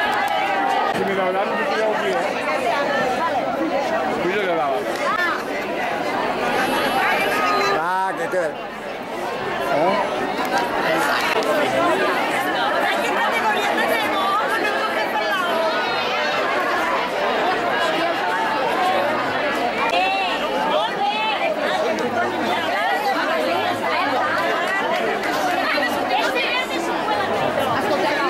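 A crowd of women and men chatter and call out outdoors nearby.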